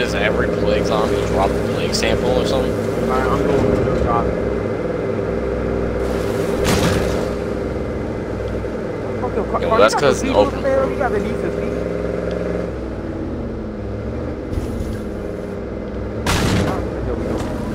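A pickup truck's engine hums steadily as it drives along a road.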